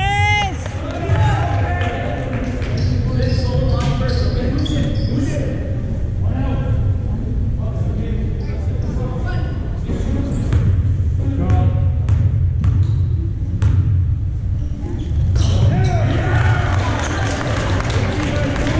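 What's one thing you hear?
Young spectators chat quietly nearby.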